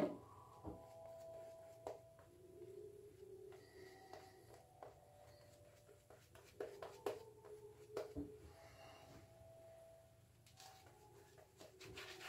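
A shaving brush swishes softly as it lathers a man's face.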